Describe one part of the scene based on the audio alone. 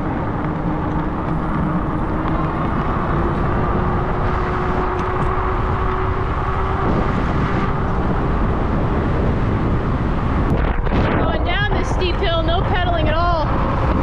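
Wind rushes and buffets loudly as a bicycle rides along.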